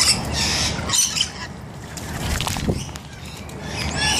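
Birds splash as they bathe in water.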